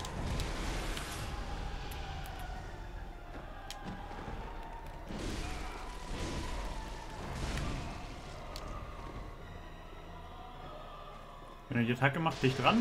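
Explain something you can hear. Swords clash and slash in a game fight.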